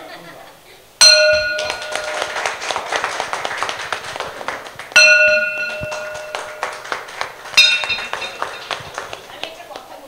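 A gong rings out loudly when struck, three times.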